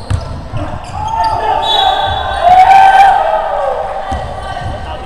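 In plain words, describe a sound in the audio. Young men shout to each other in a large echoing gym.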